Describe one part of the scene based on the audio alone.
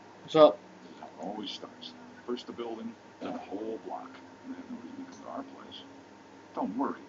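A man speaks quietly and anxiously, close by.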